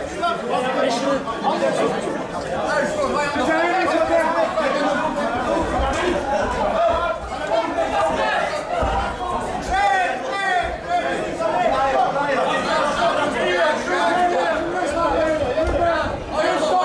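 Men at ringside shout instructions with animation in an echoing hall.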